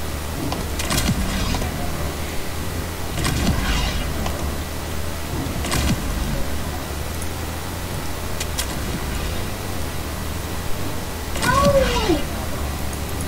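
Building pieces clunk into place in quick bursts.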